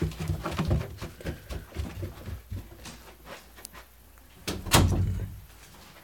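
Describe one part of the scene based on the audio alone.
A dog's paws thump up carpeted stairs.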